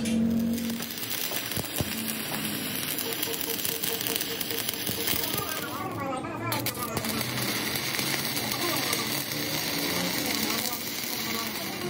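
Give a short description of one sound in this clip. An electric welder crackles and sizzles.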